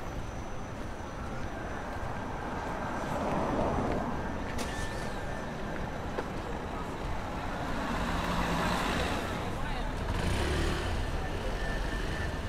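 Outdoors, the steady hum of city traffic and a busy street fills the air.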